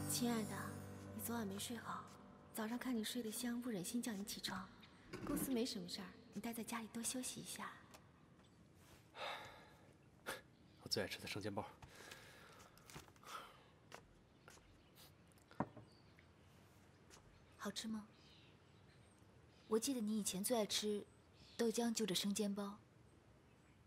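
A young woman speaks softly and affectionately, close by.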